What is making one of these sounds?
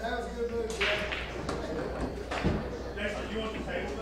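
Pool balls clack together and roll across the table.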